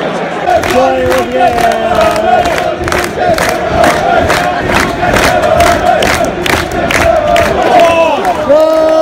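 Fans nearby clap their hands rhythmically.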